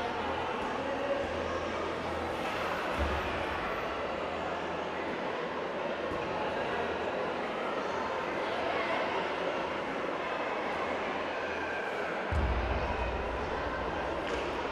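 Young men talk quietly in the background of a large echoing hall.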